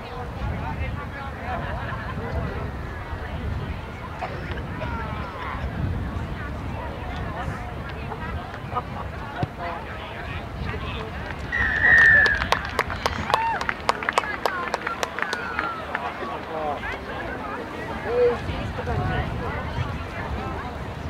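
A crowd of spectators calls out and cheers from a distance outdoors.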